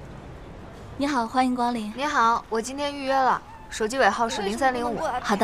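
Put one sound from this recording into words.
A young woman speaks calmly indoors.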